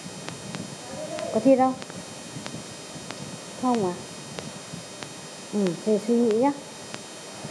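A young girl speaks softly in short phrases close by.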